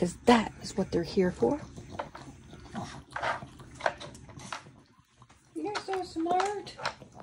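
A dog noses plastic pieces of a puzzle toy, which clack and rattle.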